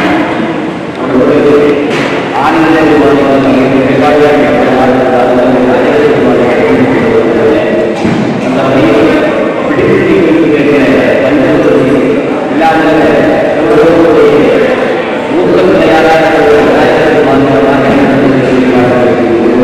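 A man chants steadily and melodically.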